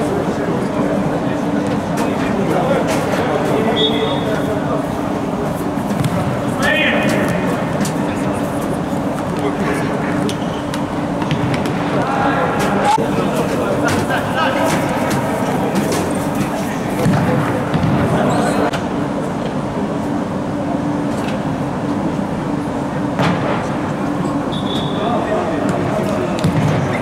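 Young men shout to each other across the echoing hall.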